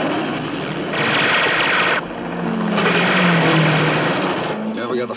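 Explosions boom and blast dirt across the road.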